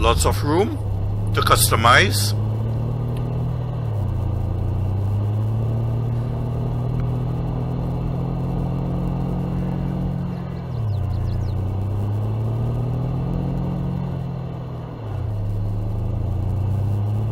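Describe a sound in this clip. Tyres rumble over a dirt track.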